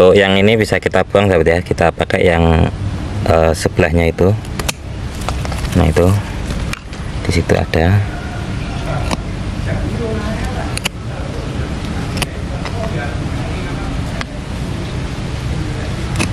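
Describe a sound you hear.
Pruning shears snip through a small branch.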